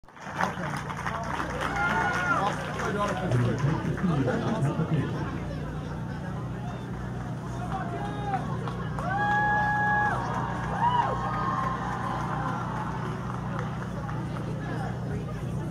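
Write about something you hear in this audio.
A marching band's horns play long, swelling notes across an open field.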